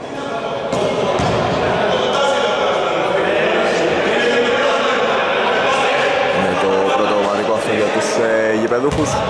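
Several men call out to each other in a large echoing hall.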